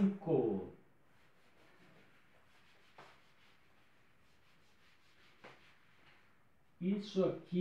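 An eraser rubs softly across a whiteboard.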